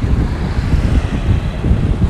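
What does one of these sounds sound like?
A motorbike engine hums close by.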